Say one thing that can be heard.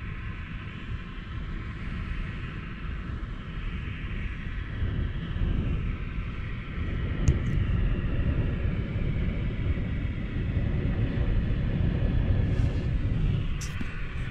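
Waves break on a shore in the distance.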